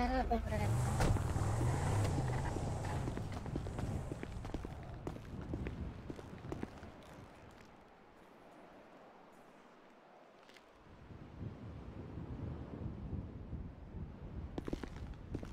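Footsteps tap on a concrete floor.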